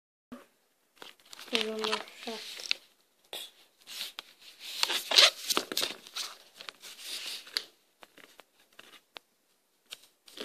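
A hand rubs and squeezes a small rubber toy, making rustling and squeaking sounds.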